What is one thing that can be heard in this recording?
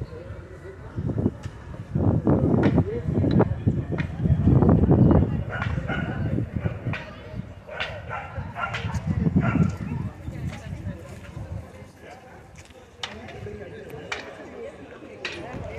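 A crowd of men and women chats nearby outdoors.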